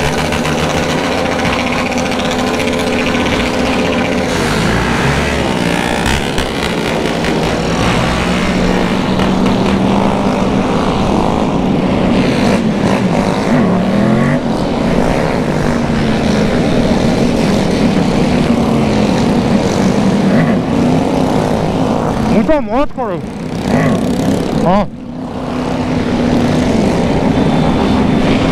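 A motorcycle engine hums steadily up close.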